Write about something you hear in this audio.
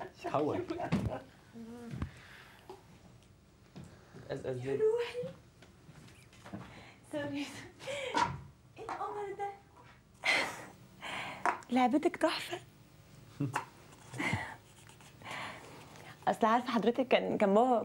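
A young woman talks with animation.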